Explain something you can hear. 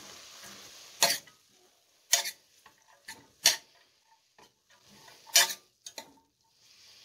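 A metal spoon scrapes and clinks against a steel pot.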